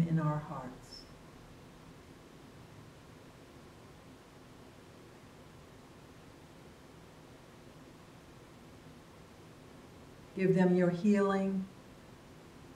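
An older woman speaks calmly nearby, in short drawn-out phrases.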